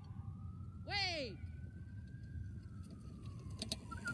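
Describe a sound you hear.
A bicycle rolls closer over grass.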